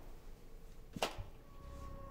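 A plastic cassette case clacks as it is picked up off the floor.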